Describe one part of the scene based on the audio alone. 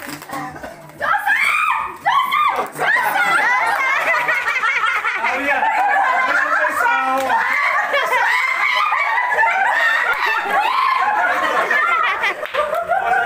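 Young women shriek and laugh excitedly.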